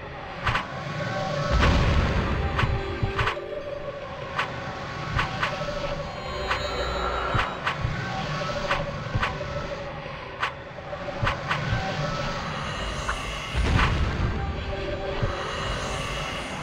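Magic spells burst and whoosh.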